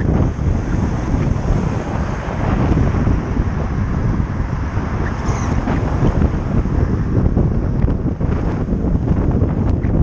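Wind buffets loudly and steadily past a fast-moving rider outdoors.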